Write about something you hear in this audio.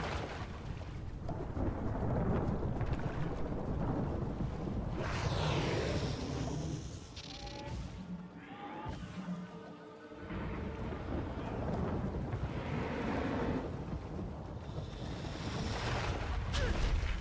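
Magic spells whoosh and shimmer with bursts of sparkling noise.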